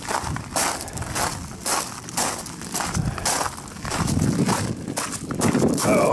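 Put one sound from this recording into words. Footsteps crunch on gravel at a steady walking pace.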